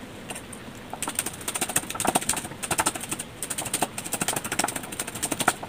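A knife chops rapidly on a wooden board.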